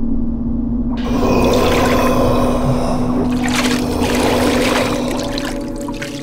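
Water gushes and splashes into a bathtub.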